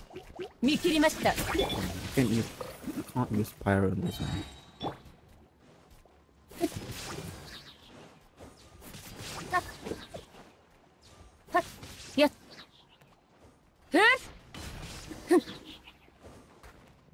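Magic blasts and sword strikes crackle and whoosh in bursts.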